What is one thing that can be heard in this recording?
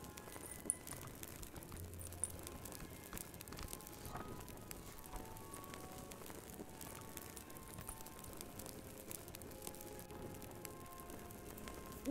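A fire crackles and pops softly in a fireplace.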